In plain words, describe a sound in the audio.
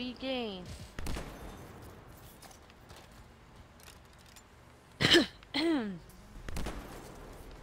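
A rifle fires with sharp, loud cracks.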